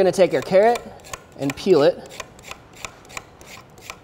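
A peeler scrapes along a carrot.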